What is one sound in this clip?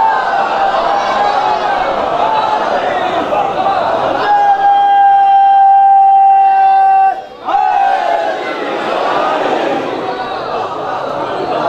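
A crowd of men chants together in response.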